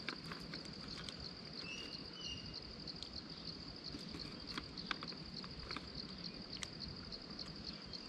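A plastic food wrapper crinkles.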